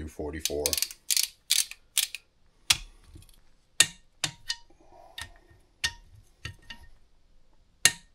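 A ratchet wrench clicks sharply as it turns.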